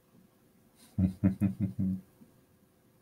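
A man laughs in short bursts close to a microphone.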